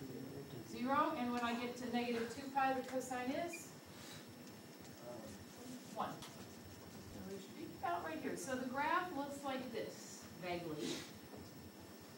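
A woman speaks calmly and clearly, as if teaching.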